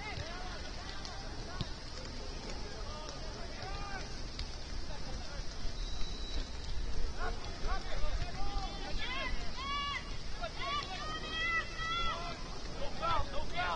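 Young men shout short calls to each other across an open outdoor field, heard from a distance.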